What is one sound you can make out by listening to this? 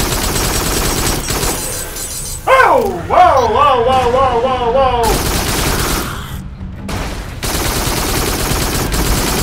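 Laser rifle shots fire in rapid bursts.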